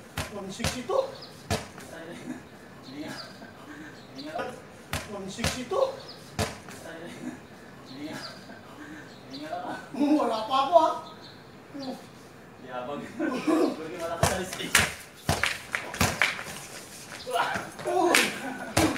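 A basketball bounces hard on an outdoor court.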